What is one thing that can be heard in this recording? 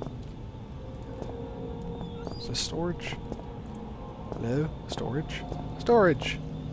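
Footsteps tap on a hard floor in an echoing corridor.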